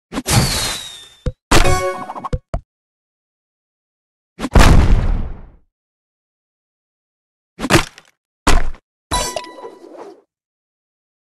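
Game pieces burst with bright chiming effects.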